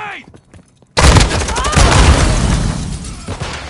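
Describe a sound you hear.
Rapid gunfire bursts loudly and close.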